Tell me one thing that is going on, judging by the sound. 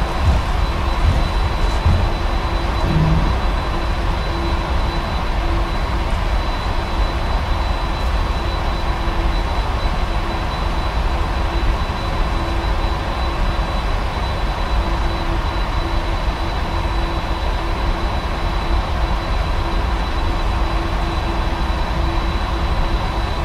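Jet engines roar steadily as an airliner rolls along a runway.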